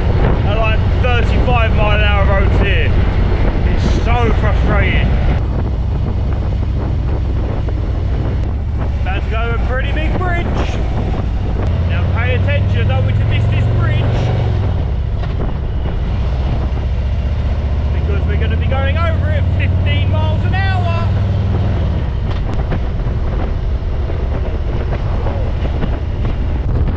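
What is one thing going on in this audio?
A motorcycle engine rumbles steadily.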